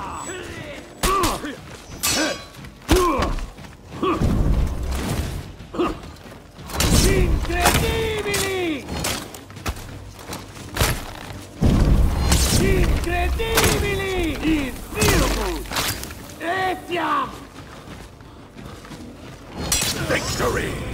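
Metal swords clash and strike again and again.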